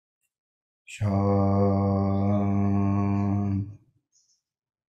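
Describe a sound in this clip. An elderly man chants a long, steady hum.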